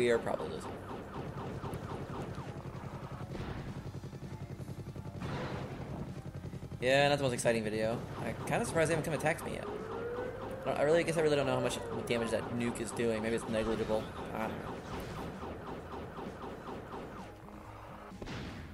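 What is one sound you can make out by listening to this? Rapid game gunfire rattles steadily.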